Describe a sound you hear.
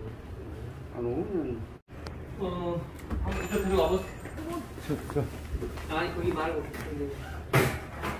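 An elderly man talks nearby.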